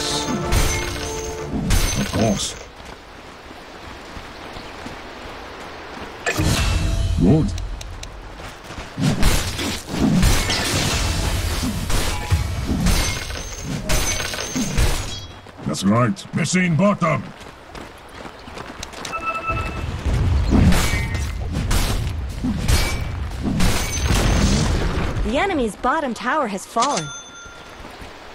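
Video game spell effects whoosh and crackle.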